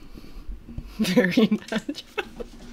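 A young woman laughs loudly into a close microphone.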